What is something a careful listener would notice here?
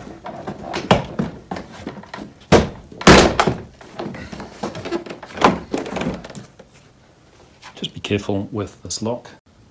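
Plastic clips snap loose as a door panel is pried off.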